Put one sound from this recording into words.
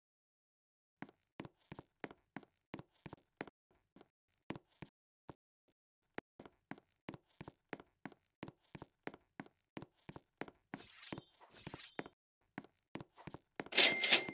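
Light footsteps tap at a quick, even pace.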